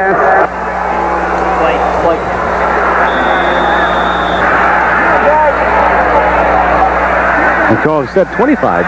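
A large crowd cheers and roars in a stadium.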